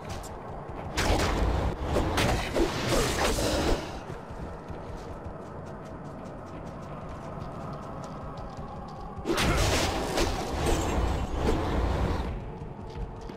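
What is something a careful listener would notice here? Spells crackle and whoosh in loud bursts during a fight.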